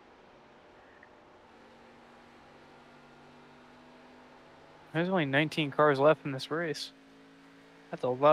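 A race car engine drones faintly and steadily.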